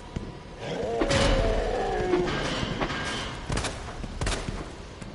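A pistol fires loud, sharp shots.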